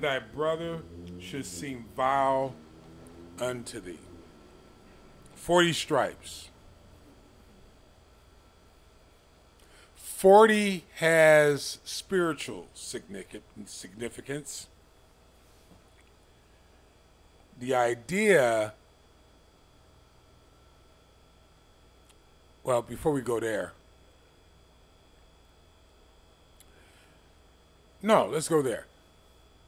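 An elderly man speaks close into a microphone, in short bursts with long pauses.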